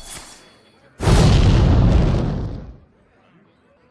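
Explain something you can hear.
A magical chime rings out with a swell.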